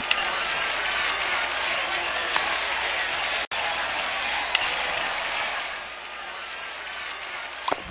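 Upbeat game music plays.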